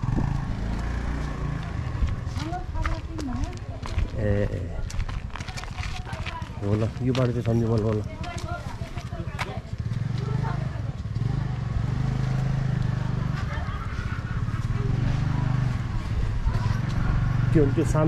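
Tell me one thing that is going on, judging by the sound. Footsteps scuff on a paved street.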